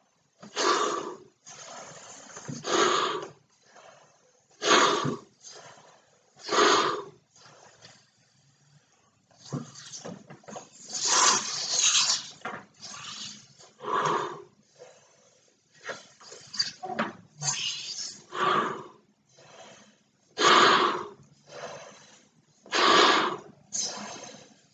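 A man blows hard into a large balloon in forceful puffs, close by.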